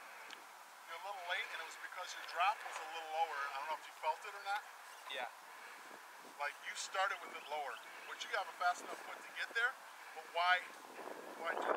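A man speaks calmly and close to the microphone, outdoors.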